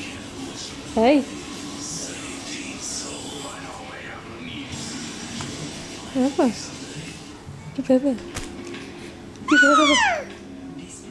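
A baby squeals and babbles close by in short high bursts.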